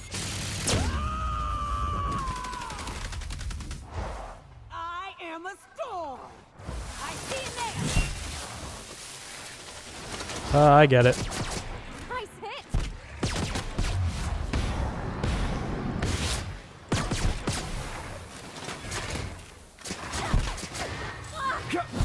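Guns fire in rapid bursts of sharp bangs.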